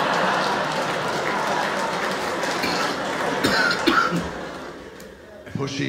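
Two men laugh close by.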